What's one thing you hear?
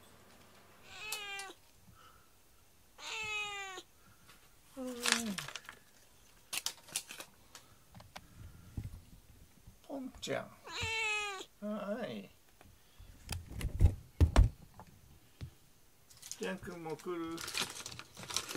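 A cat meows loudly and repeatedly up close.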